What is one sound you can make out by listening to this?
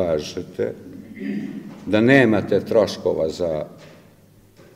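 A middle-aged man speaks with emphasis into a microphone.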